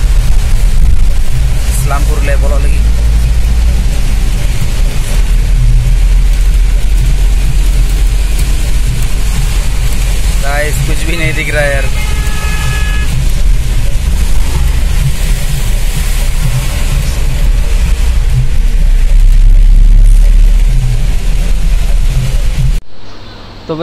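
Heavy rain pounds on a vehicle's windscreen.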